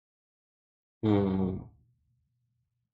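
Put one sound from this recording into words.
A man speaks briefly into a nearby microphone.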